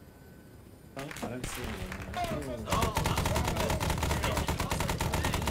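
A helicopter's rotor thumps rapidly overhead.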